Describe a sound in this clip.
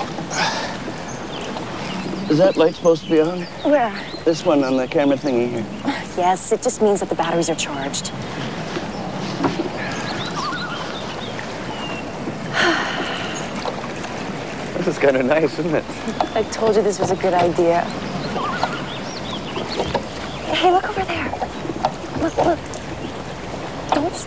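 Oars splash and knock as a rowing boat moves through water.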